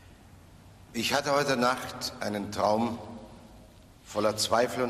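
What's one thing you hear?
An older man sings out in a large echoing hall.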